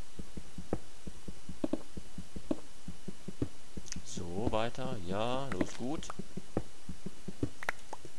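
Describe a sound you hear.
A pickaxe taps and crunches against stone blocks.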